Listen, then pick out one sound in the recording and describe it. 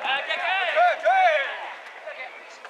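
A crowd of spectators chants and cheers loudly outdoors.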